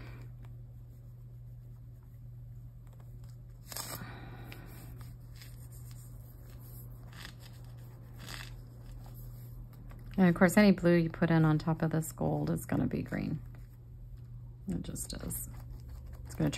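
Fingers softly dab and rub paint onto paper.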